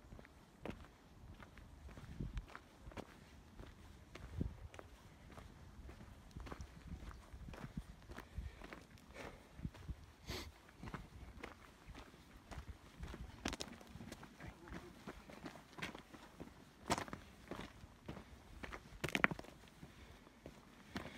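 Footsteps crunch steadily on a gravel path.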